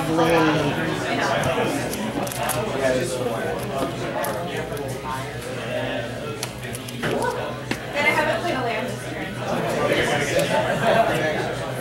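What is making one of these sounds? Playing cards slide and tap softly onto a mat.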